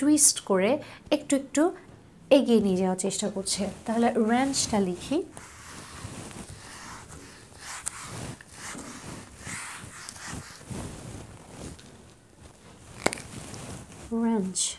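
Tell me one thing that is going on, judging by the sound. A woman speaks clearly and calmly.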